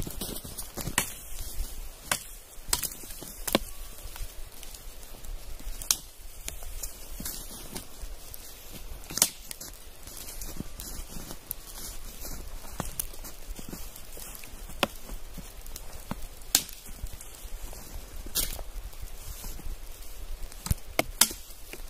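A man chops bamboo stalks with sharp blows.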